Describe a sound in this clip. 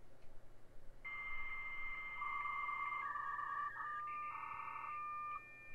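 A modem dials and screeches with shifting, steady electronic tones.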